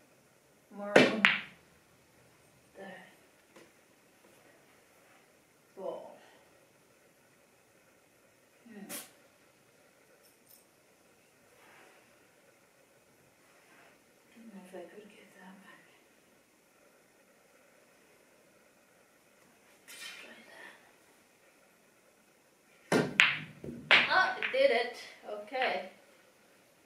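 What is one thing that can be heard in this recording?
Billiard balls clack against each other.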